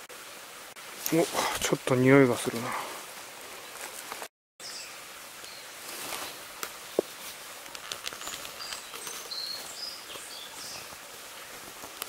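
A small bird splashes in still water.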